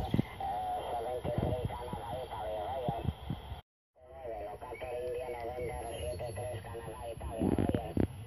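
A warbling, whistling tone plays from an old radio loudspeaker.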